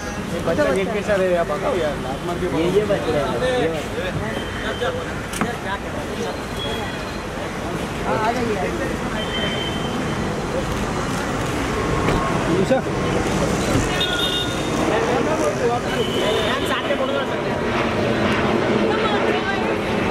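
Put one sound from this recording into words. Traffic hums steadily on a busy street.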